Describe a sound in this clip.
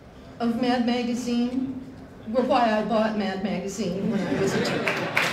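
A middle-aged woman speaks warmly into a microphone.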